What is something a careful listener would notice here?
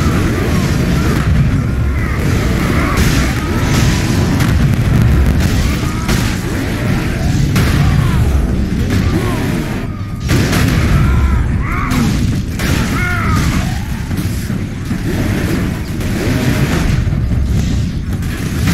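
Heavy weapon blows thud and crash in a frantic fight.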